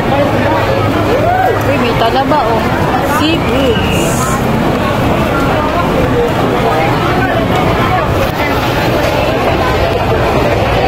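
A crowd of men and women chatter all around in a busy, echoing hall.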